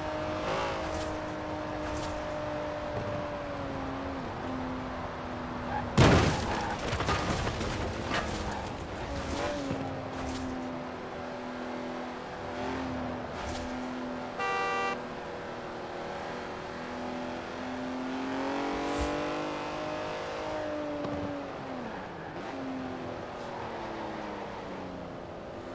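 A racing car engine drones and rises and falls in pitch as the car speeds up and slows down.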